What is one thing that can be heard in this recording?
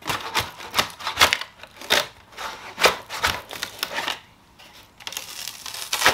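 Old wooden veneer cracks and splits as it is pried loose.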